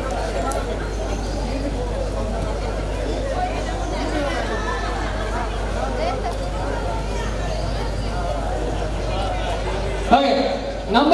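A crowd of adults chatters outdoors.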